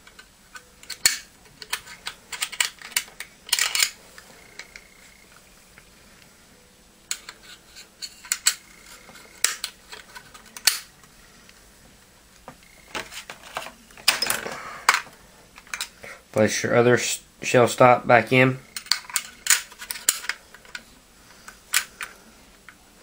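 Metal parts click and tap together.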